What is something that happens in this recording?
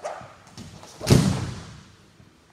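A heavy dummy slams onto a mat with a loud thud.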